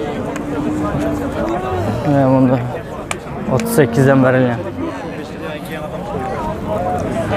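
Men talk in a murmuring crowd outdoors.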